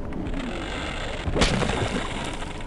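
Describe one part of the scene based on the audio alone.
A blast bursts with a loud bang.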